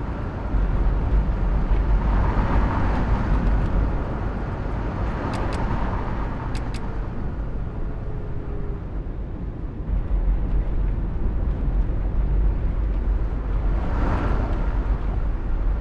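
Passing vehicles whoosh by.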